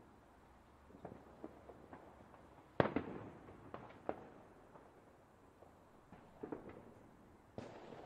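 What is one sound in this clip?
Fireworks boom and crackle in the open air.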